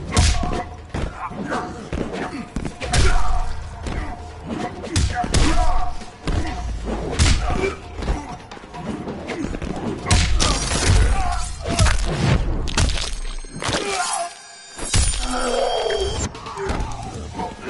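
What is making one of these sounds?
Fighters grunt and yell as they strike.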